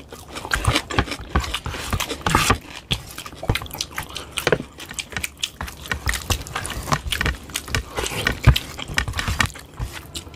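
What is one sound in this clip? Two men chew and smack loudly, close to a microphone.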